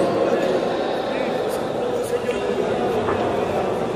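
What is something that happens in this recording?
A cue strikes a ball with a sharp click.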